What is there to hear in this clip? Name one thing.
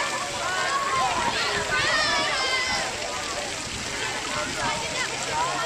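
Water splashes as people move about in a lake.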